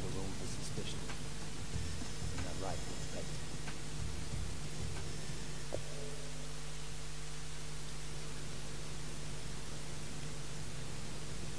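A low, steady drone of an aircraft cabin hums throughout.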